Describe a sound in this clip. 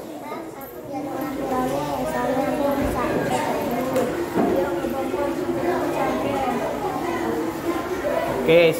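A young boy speaks nearby.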